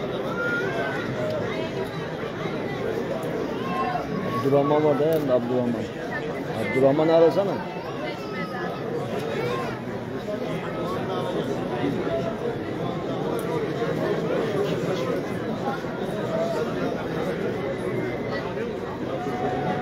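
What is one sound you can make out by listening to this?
A large outdoor crowd chatters and murmurs steadily.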